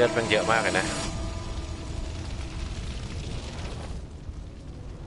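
A loud explosion rumbles and crackles.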